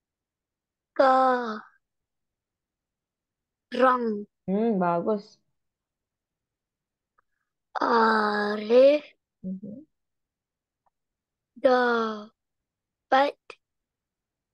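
A woman speaks slowly and clearly through an online call, reading out words in short phrases.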